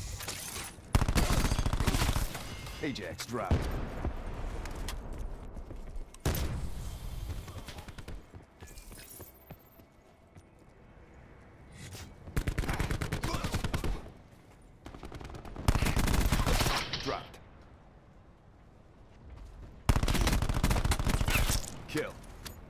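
Rapid gunfire rattles in loud, sharp bursts.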